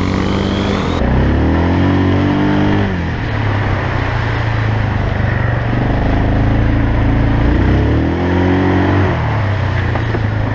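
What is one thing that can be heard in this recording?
A quad bike engine revs and roars close by.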